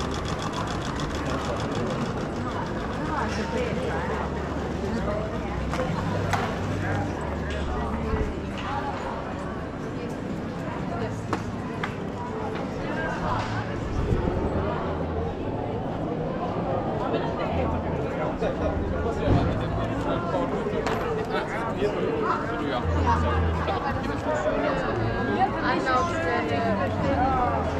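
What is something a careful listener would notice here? A crowd of people chatters outdoors in a busy street.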